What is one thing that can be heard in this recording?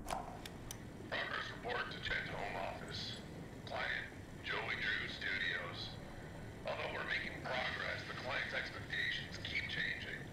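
A man's recorded voice speaks calmly from an old tape player.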